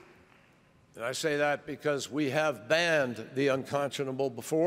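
A middle-aged man speaks calmly and formally through a microphone in a large hall.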